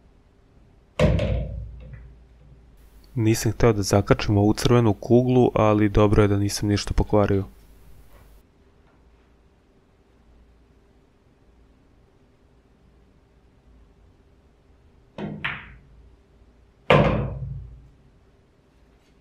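Pool balls clack together and roll across the table.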